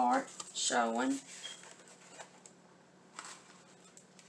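A cardboard sheet rustles and taps as it is laid down.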